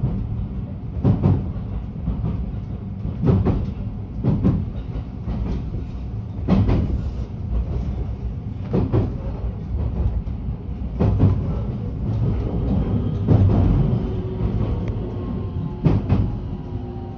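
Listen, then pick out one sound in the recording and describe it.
Train wheels clack over rail joints at a steady pace.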